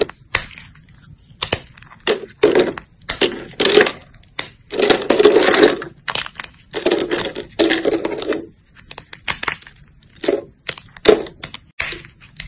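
Fingers snap thin dry soap plates with crisp cracks and crunches.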